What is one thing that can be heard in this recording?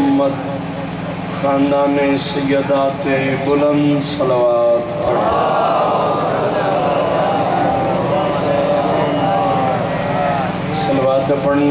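A man chants loudly in a sung, mournful voice through a microphone and loudspeakers.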